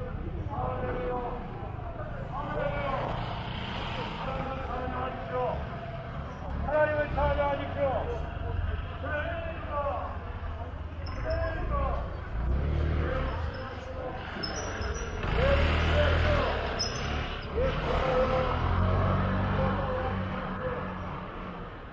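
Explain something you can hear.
Men and women chatter as they walk by outdoors.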